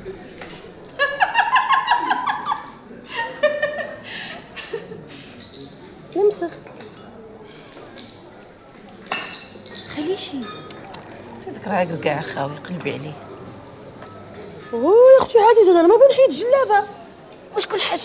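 A young woman speaks loudly and with animation nearby.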